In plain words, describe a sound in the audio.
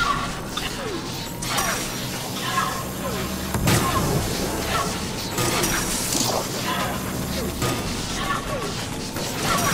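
An energy beam weapon buzzes and crackles as it fires.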